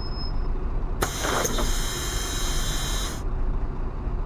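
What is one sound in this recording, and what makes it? Bus doors hiss open with a burst of air.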